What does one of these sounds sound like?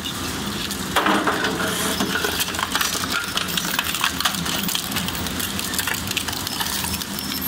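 Metal cans crunch and tear between shredder blades.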